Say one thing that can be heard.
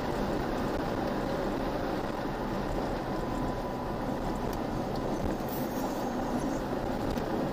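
Tyres rumble over a dirt road.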